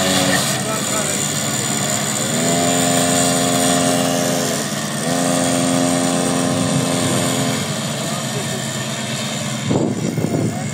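A small engine hums and whines as a trike rolls along the road.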